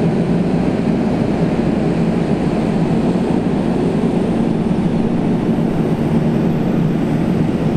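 Heavy tractor engines rumble and roar nearby.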